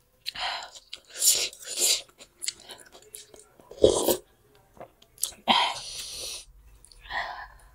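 A woman slurps noodle soup close to the microphone.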